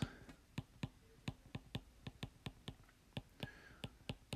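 A stylus taps and scratches on a tablet's glass.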